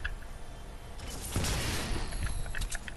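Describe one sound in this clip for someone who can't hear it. A loot piñata bursts open with a loud crackling whoosh.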